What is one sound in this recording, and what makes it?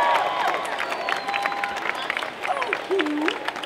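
A person claps hands.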